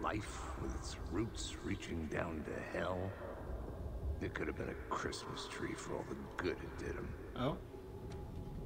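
A man speaks calmly and low through a microphone.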